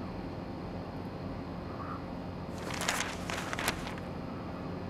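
Paper rustles as a newspaper is handled.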